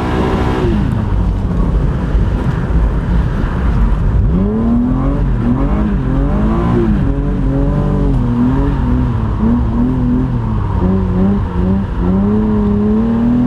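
A car engine revs hard and changes pitch as gears shift.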